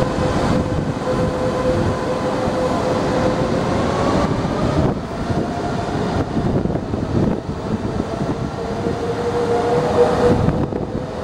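Train wheels hum and whine on the rails.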